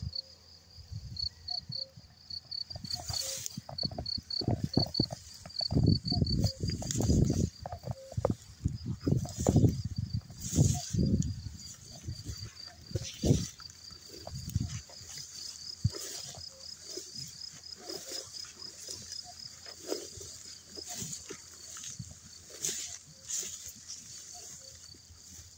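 Tall grass rustles in the wind.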